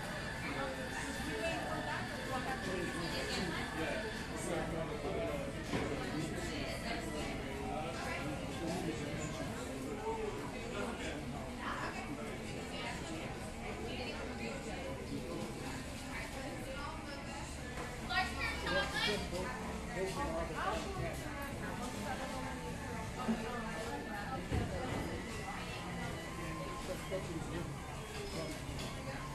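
Many people chatter at once, close by and far off.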